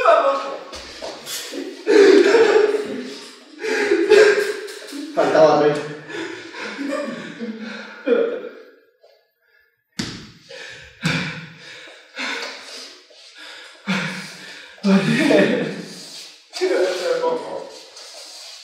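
A broom sweeps across a hard floor.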